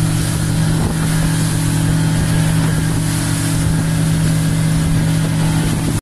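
A boat engine drones steadily at speed.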